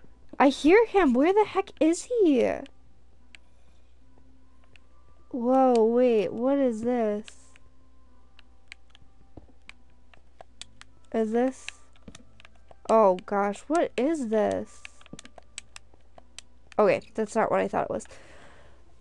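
A young woman speaks with animation close to a microphone, in short bursts.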